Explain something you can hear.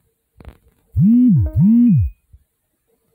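A game's error buzzer sounds twice in a falling, swooping tone.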